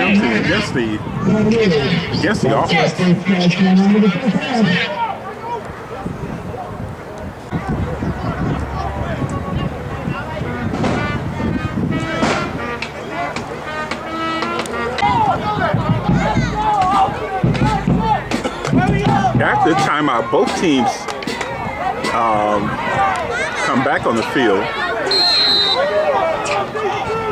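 A crowd of men and women chatter and call out outdoors.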